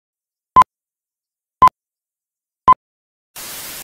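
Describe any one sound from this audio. A countdown beeps once a second.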